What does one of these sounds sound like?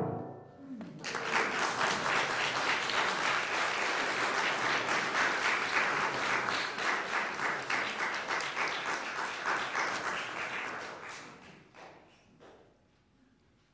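An audience applauds in an echoing hall, then fades.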